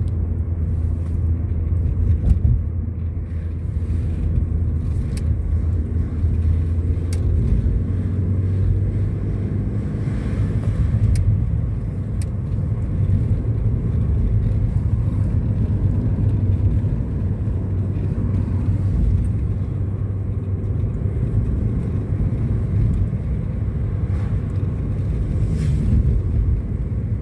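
A car's engine and tyres rumble low from inside the moving car.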